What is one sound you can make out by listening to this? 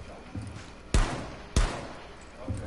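A pistol fires two sharp shots.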